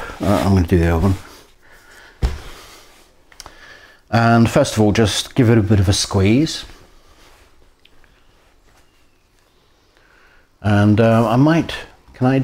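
A man speaks calmly and clearly into a nearby microphone, in short phrases with pauses.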